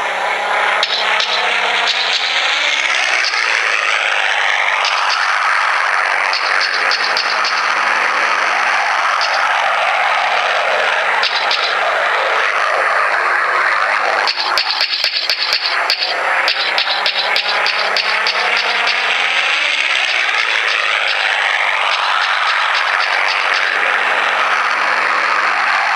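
Propeller plane engines drone steadily in a video game.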